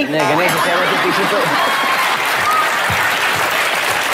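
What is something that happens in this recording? A woman laughs loudly.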